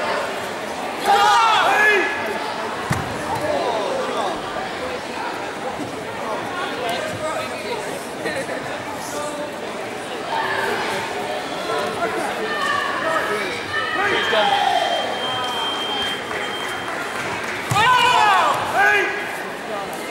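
Spectators shout and cheer loudly.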